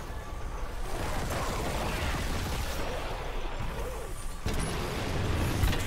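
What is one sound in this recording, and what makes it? A flamethrower roars as it sprays fire.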